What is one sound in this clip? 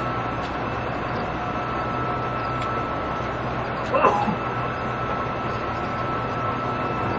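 An electric train idles with a steady low hum.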